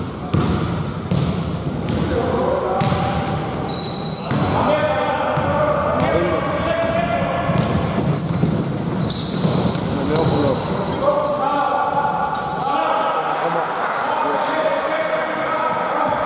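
A basketball bounces and thuds on the floor.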